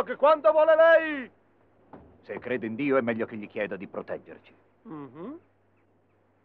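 A man speaks with animation in a cartoon voice.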